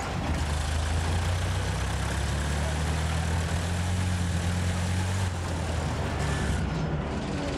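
A truck engine rumbles as the vehicle drives along.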